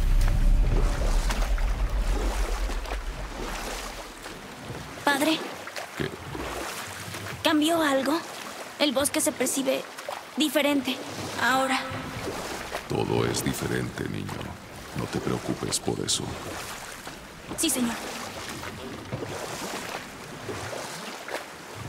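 An oar paddles through water.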